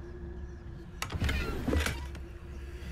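A magical whoosh sweeps past.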